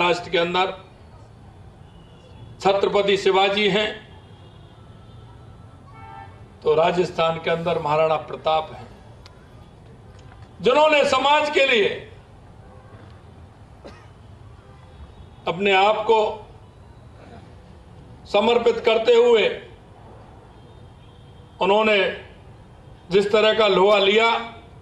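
A man speaks with emphasis into a microphone, heard over loudspeakers, in bursts with pauses.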